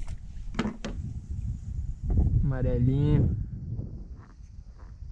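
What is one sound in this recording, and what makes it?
Water laps gently against a kayak hull.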